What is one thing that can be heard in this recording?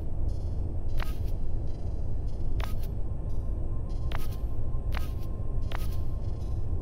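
Short interface clicks sound as menu selections change.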